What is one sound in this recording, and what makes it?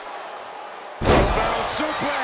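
A body slams onto a wrestling mat with a loud thud.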